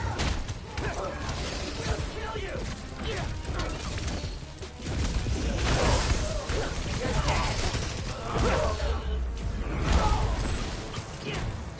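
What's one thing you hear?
Punches and kicks land in a fast fight.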